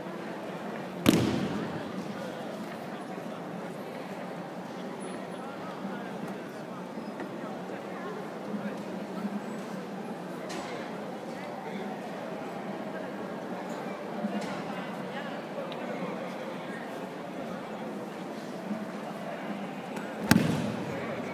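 A body slams onto a mat with a loud thud that echoes through a large hall.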